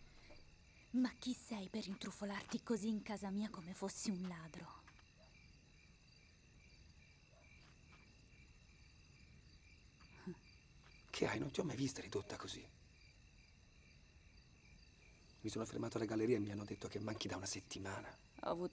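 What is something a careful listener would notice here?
A young woman speaks tensely and quietly nearby.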